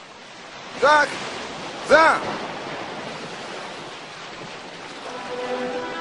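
A crowd splashes through shallow water.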